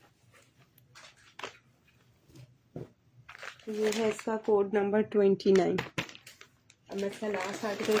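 Plastic packets crinkle as they are handled.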